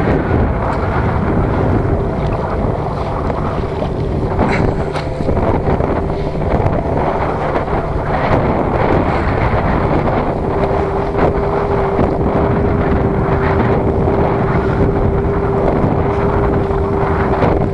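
A fishing net rustles and swishes as hands pull it in.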